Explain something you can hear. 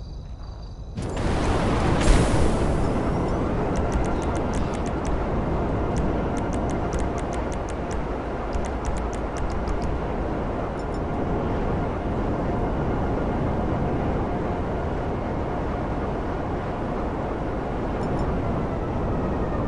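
A rocket thruster hisses loudly.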